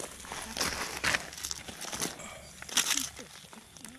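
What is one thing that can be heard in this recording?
A hand shifts small stones on gravel.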